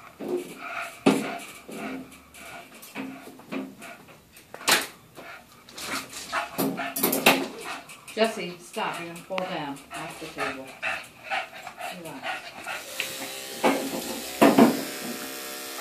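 A small dog yaps.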